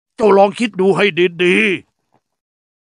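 An elderly man speaks earnestly, close by.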